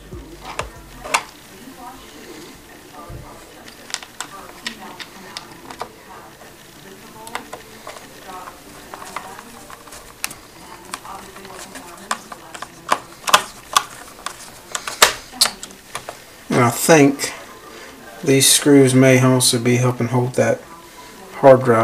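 A hand rubs and knocks against a microphone close up.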